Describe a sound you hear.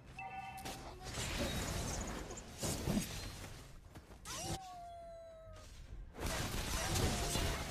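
Game spells whoosh and crackle as characters fight.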